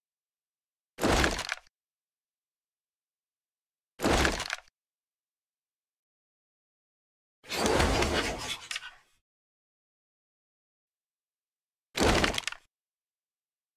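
A gun's metal parts clack and click as the gun is handled.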